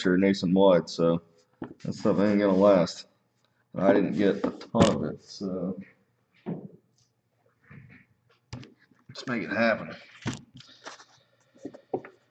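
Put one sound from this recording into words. Trading cards rustle and flick in a man's hands.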